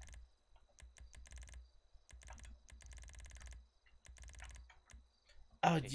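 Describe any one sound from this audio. Quick electronic ticks click in rapid bursts.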